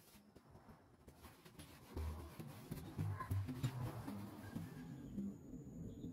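Sandpaper rubs against wood.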